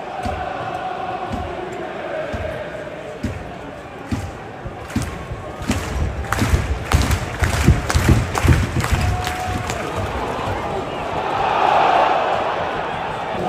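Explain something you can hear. A large stadium crowd murmurs and chants in an open-air ground.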